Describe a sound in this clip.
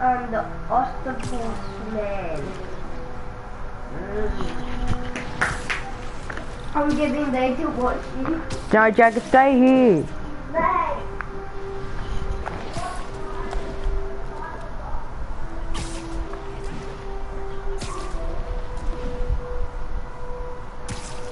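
Sharp swishing thwips sound as a figure swings on lines between tall buildings.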